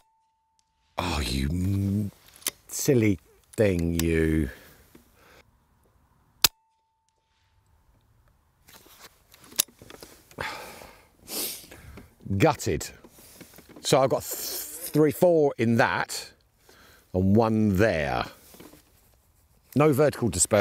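A middle-aged man talks calmly and close by.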